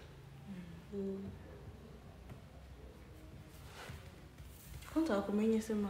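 Another young woman answers softly, close by.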